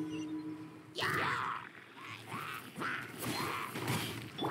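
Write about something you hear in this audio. Weapon blows and bursts of impact crash in quick succession.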